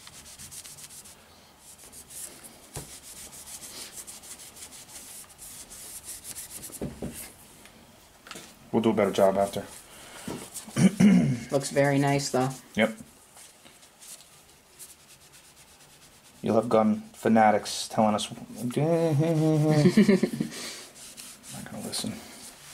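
A cloth rubs on a wooden rifle stock.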